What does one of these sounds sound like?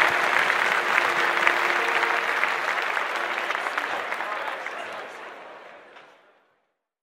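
An electric guitar plays in a band and then fades away.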